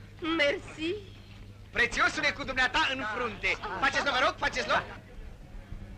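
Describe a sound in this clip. A woman talks loudly and with animation close by.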